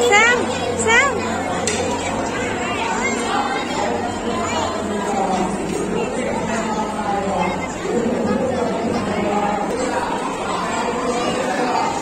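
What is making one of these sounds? A crowd of women and children chatters indoors.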